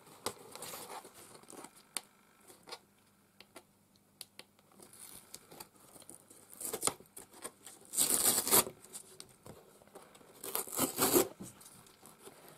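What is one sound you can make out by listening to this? A small blade scrapes and tears at cardboard.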